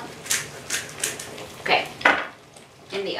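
A pepper grinder crunches in short bursts.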